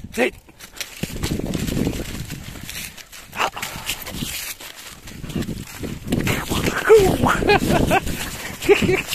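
A small dog scampers through dry leaves on grass.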